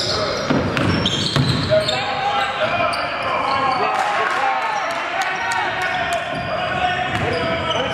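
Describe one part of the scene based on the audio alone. Sneakers squeak sharply on a gym floor in an echoing hall.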